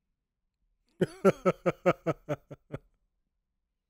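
A man laughs heartily, close to a microphone.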